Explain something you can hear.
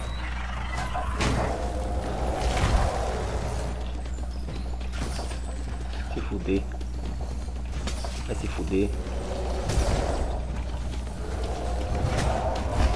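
Magic blasts and impacts thump during a fight.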